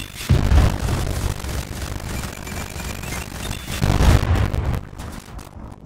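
Explosions boom loudly with deep rumbling.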